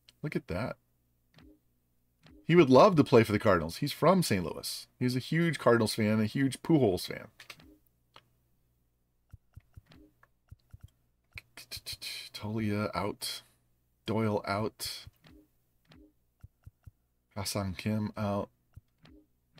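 A man talks calmly and closely into a microphone, in bursts with pauses.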